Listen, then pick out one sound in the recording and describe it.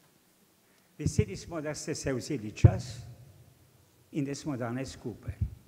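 An elderly man speaks calmly into a microphone over a loudspeaker.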